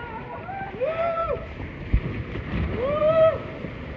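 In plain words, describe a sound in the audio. Water rushes and splashes under a raft.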